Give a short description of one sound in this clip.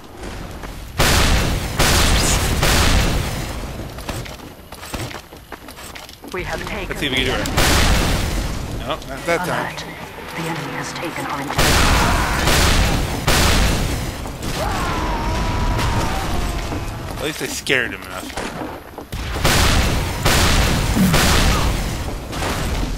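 Rockets blast and explode with loud booming bursts.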